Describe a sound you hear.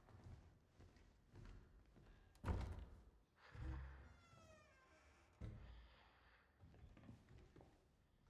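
A door handle rattles and a door creaks open.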